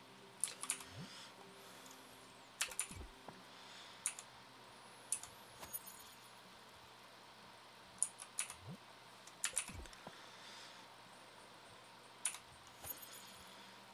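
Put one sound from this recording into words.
Short electronic chimes and clicks ring out now and then.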